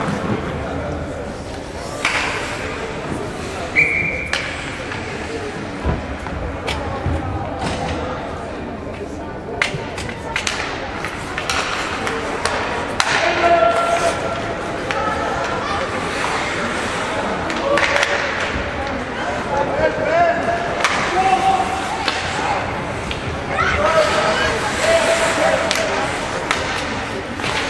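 Spectators murmur and call out in a large echoing rink.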